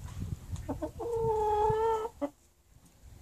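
A hen squawks loudly in a long call.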